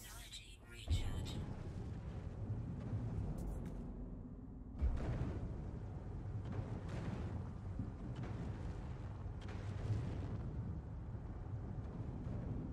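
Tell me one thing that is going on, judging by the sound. Rocks shatter and crumble.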